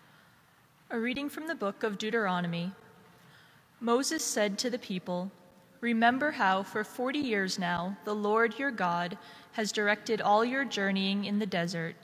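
A young woman reads out calmly into a microphone in a large echoing hall.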